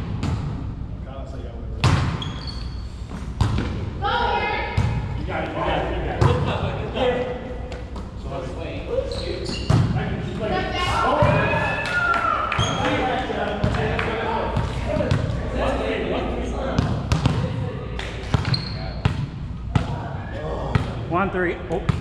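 Young men shout and call out during play in a large echoing gym.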